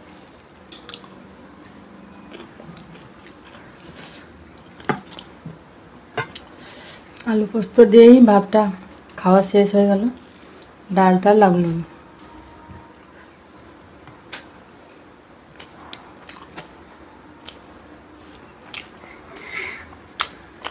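Fingers scrape and tap against a metal plate while mixing food.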